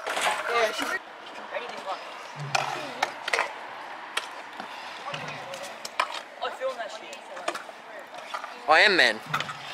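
Scooter wheels roll and scrape on concrete ramps.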